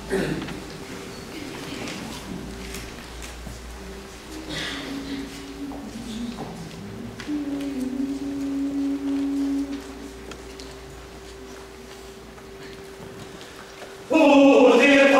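A mixed choir hums soft, long held notes in a resonant room.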